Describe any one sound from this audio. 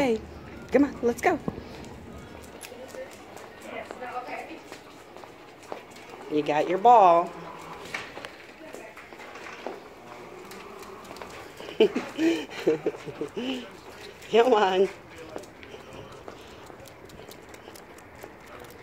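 A dog's collar tags jingle as the dog walks.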